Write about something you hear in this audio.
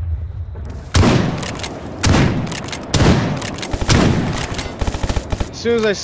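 A shotgun fires several loud, booming shots.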